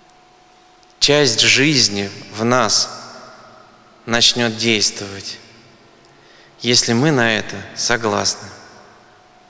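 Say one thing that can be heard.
A middle-aged man speaks calmly into a microphone in a reverberant hall, pausing between phrases.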